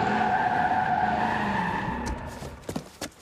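A car engine runs and then stops.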